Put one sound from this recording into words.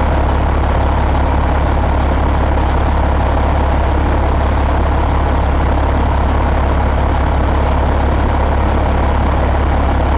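A large diesel engine idles close by with a loud, steady rumble.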